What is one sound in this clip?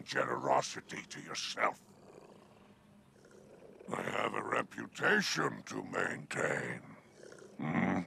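A man speaks in a deep, gravelly voice with sly amusement.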